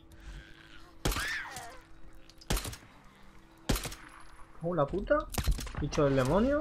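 Gunshots ring out sharply several times.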